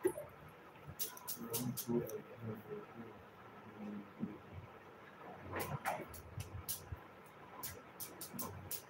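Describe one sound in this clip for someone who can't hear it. Glass bangles clink and jingle on a wrist.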